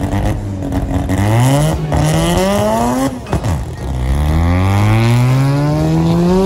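A car engine roars and rises in pitch as the car accelerates away, shifting gears.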